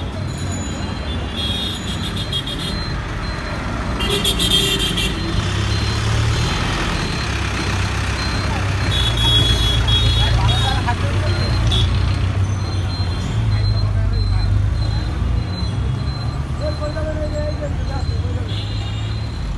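Busy street traffic rumbles steadily outdoors.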